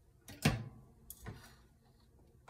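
An oven dial clicks as it turns.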